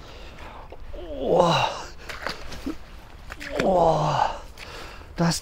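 A man cries out and gasps loudly close by.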